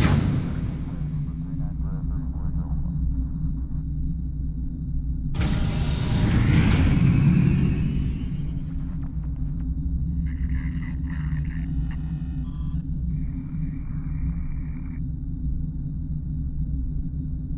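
A spaceship engine hums with a low, steady rumble.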